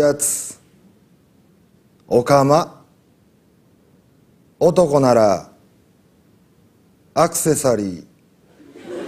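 A young man reads aloud in short, expressive phrases with pauses between them.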